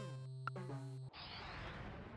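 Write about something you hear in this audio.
Bright electronic game music plays and cuts off abruptly.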